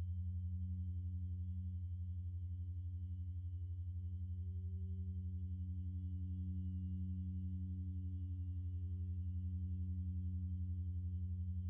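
A modular synthesizer plays a low, droning pulse that throbs rapidly and steadily.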